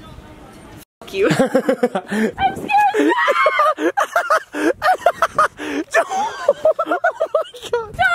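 Young people laugh and shriek excitedly close by.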